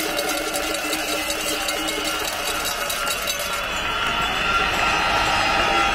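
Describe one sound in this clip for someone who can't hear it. A man speaks over loudspeakers, echoing across an open square.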